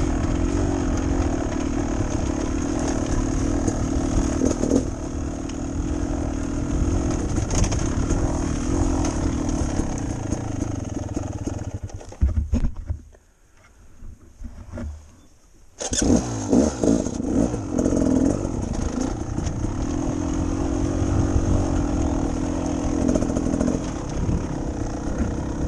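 A motorcycle engine revs up and down close by, cutting out briefly before roaring again.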